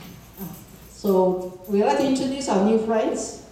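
A young woman speaks into a microphone over loudspeakers in an echoing hall.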